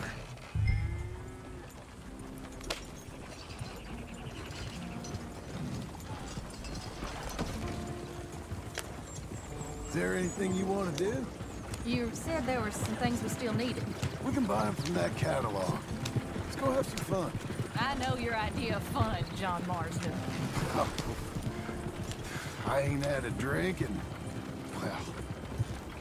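Wooden wagon wheels roll and rattle over a dirt track.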